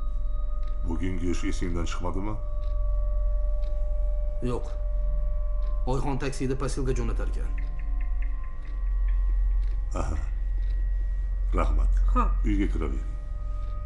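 An elderly woman speaks softly nearby.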